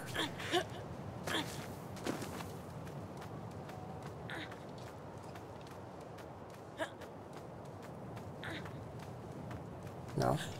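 A figure scrapes and shuffles while climbing a stone wall.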